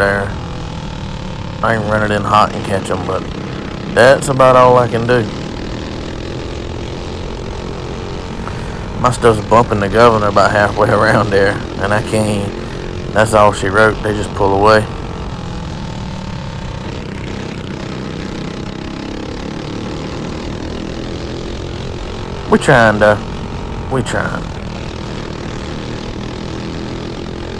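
A kart engine drones steadily close by.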